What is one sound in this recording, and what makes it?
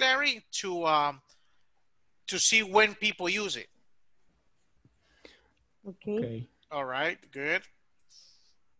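A middle-aged man speaks calmly over an online call, in short bursts.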